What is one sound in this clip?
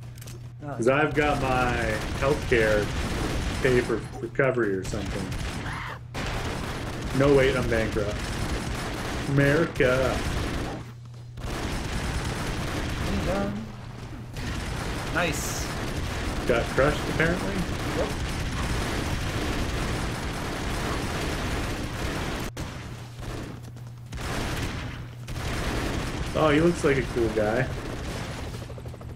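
Gunfire and explosions rattle from a game.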